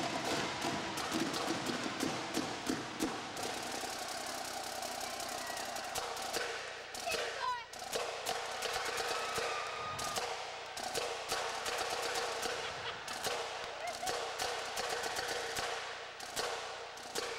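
Snare drums play a fast rhythm.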